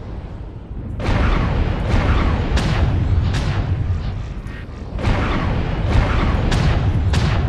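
Weapons fire in loud, rapid crackling bursts.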